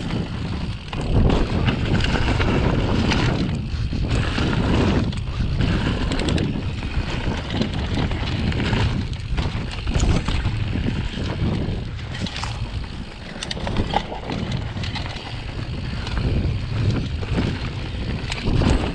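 Wind rushes loudly past a fast-moving rider.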